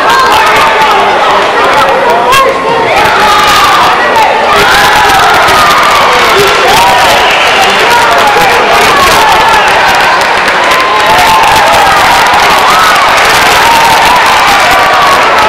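A large crowd shouts and cheers in an echoing hall.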